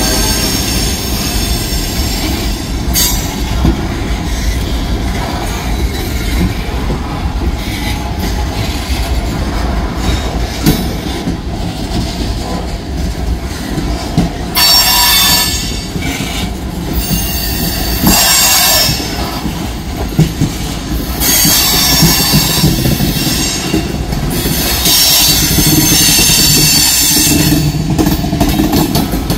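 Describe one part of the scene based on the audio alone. Steel wheels clank and squeal on the rails.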